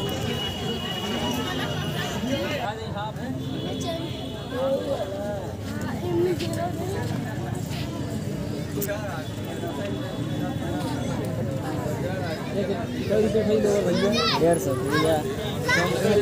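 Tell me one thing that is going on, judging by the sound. A busy outdoor crowd chatters all around.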